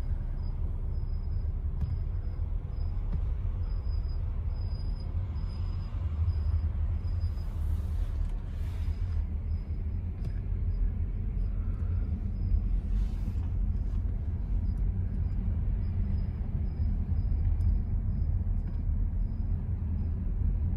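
A car's engine rumbles low and steady from inside the cabin.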